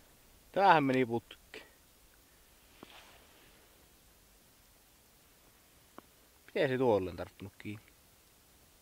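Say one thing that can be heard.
A man speaks calmly close by, outdoors in quiet surroundings.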